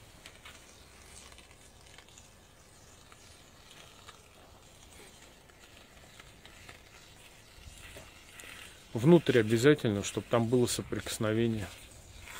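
A foam gun sprays with a soft hiss.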